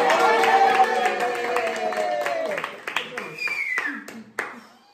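A group of people sing together closely.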